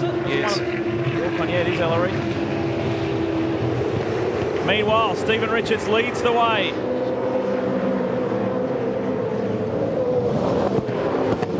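Racing car engines roar and whine at high revs.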